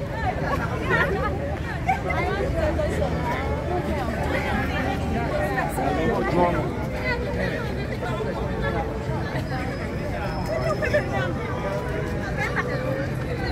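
A crowd of young men and women talks, shouts and cheers excitedly close by, outdoors.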